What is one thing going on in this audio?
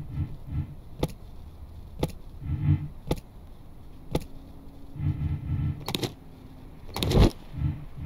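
Suitcases thump softly as they are dropped onto a luggage trolley.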